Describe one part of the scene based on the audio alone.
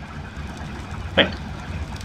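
A torch fire crackles softly.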